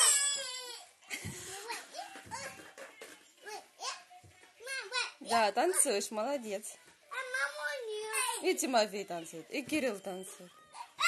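An electronic toy plays a bright, sing-song voice.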